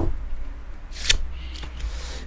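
A card is slapped down softly onto a cloth-covered table.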